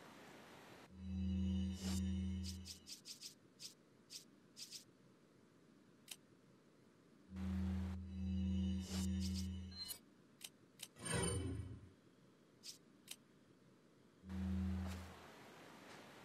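Short electronic menu tones hum and click.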